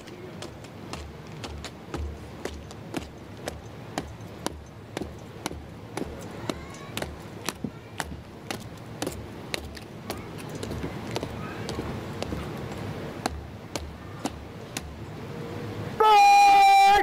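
Boots stamp and march in a steady rhythm.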